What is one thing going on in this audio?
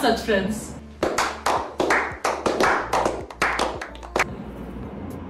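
A small group of men claps their hands.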